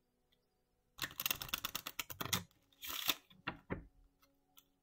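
Playing cards are shuffled with a rapid riffling patter.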